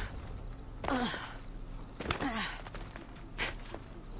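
Footsteps run over stone and gravel.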